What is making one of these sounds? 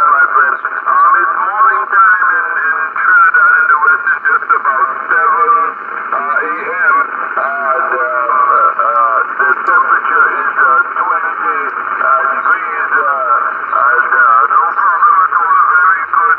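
A radio receiver plays a thin, crackly transmission through its loudspeaker.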